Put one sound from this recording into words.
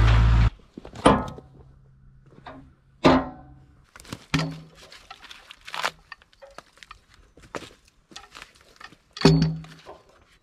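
Metal clanks sharply.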